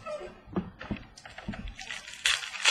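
Small plastic items clack together on a hard surface.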